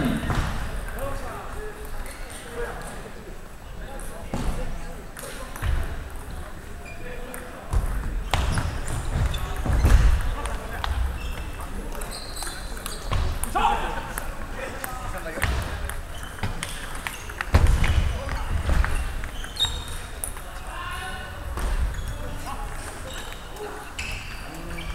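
A ping-pong ball clicks sharply on the table and bats.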